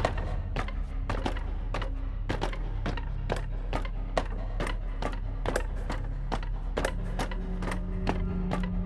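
Footsteps clank rhythmically on ladder rungs as a character climbs.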